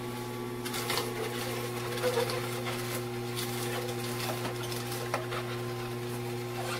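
Celery stalks crunch and snap as a juicer crushes them.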